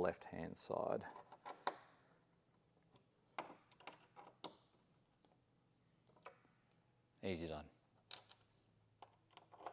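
A small metal tool clicks and taps against a metal bracket.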